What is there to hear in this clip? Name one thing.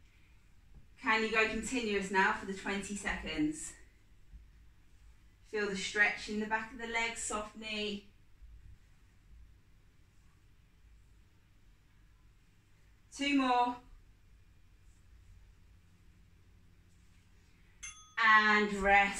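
A young woman speaks calmly and clearly, as if giving instructions, close to the microphone.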